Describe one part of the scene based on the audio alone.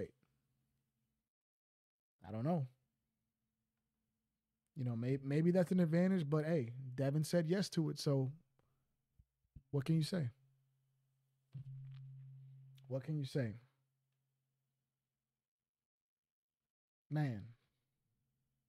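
A young man talks with animation close to a microphone, in short bursts with pauses.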